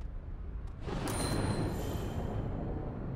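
A short chime rings out.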